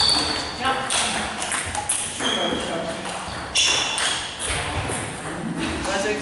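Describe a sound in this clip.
A table tennis ball clicks against paddles and bounces on a table in an echoing hall.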